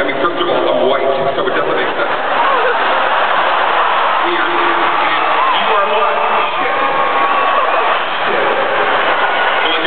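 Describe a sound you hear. A man talks animatedly into a microphone, heard through loudspeakers in a large hall.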